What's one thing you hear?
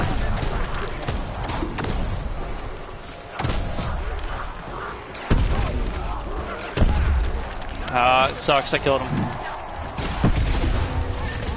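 A gun fires in loud, sudden bursts.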